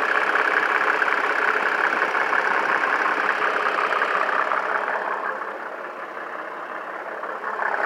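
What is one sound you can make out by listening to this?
A diesel engine idles with a steady clatter, growing quieter as the listener walks away.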